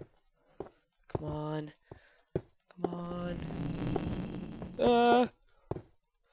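A pickaxe strikes a stone block with short knocks.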